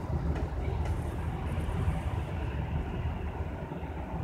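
A bus engine hums as the bus pulls away.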